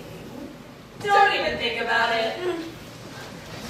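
A young woman calls out loudly on a stage with a slight echo.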